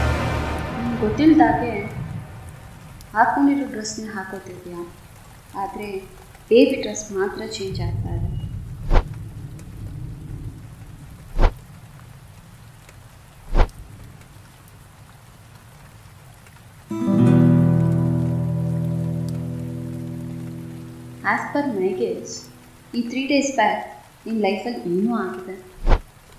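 A woman speaks calmly and closely.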